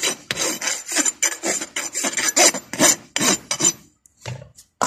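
A farrier's rasp files a horse's hoof.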